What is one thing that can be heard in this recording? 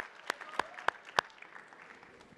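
A man claps his hands a few times.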